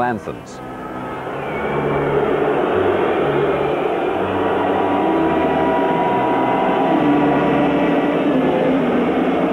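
A large crowd sings together in an open stadium.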